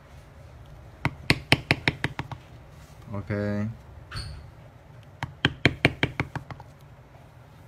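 A mallet strikes a leather stamping tool in quick, sharp taps.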